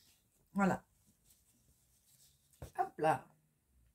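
Stiff fabric rustles as it is unfolded.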